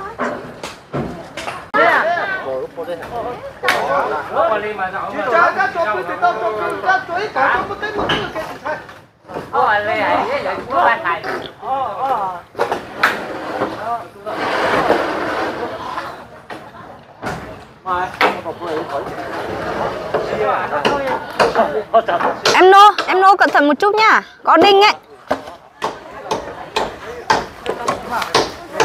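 Wooden beams knock and clatter as men pull down a roof frame.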